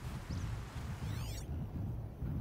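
An electronic scanner hums on with a quick sweeping tone.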